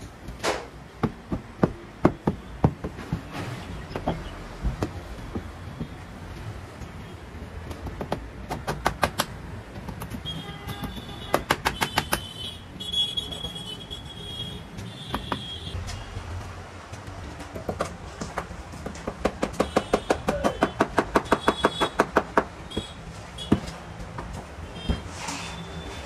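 A hammer taps repeatedly on a wall panel.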